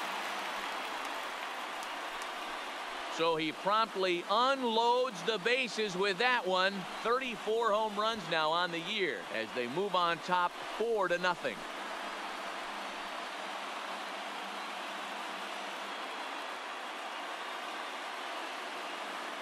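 A large stadium crowd cheers.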